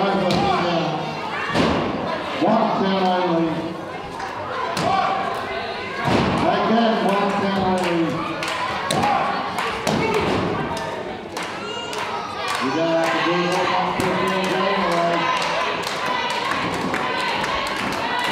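Bodies thud onto a wrestling mat.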